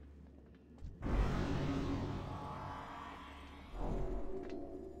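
Fantasy battle effects whoosh and crackle.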